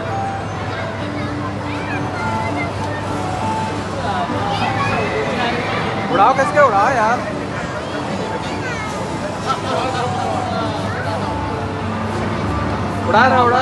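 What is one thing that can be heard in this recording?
Arcade machines play beeping electronic tunes nearby.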